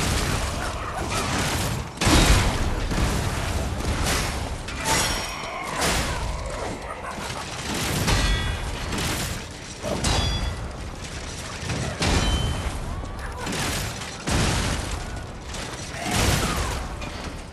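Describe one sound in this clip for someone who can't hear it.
Weapons clash and slash in a fight.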